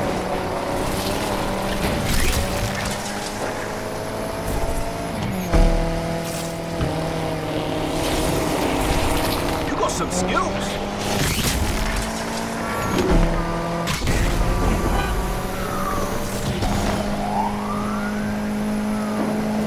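Tyres skid and hiss on a wet road.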